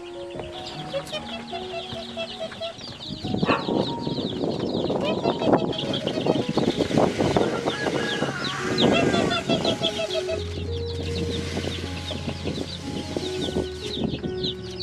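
Chicks peep with high, rapid chirps.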